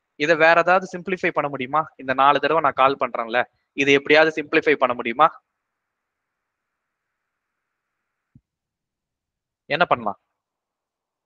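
A man speaks calmly into a close microphone, as if in an online call.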